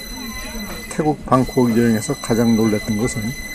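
A man talks loudly close by.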